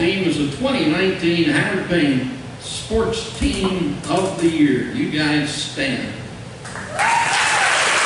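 A man speaks through a microphone in a large echoing hall.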